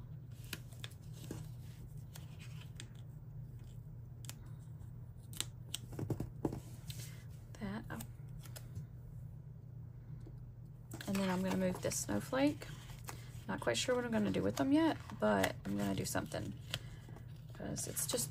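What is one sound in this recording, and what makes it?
Paper rustles and crinkles as pages are handled.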